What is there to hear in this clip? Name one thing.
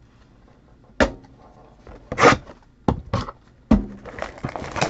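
Cardboard boxes knock against a table.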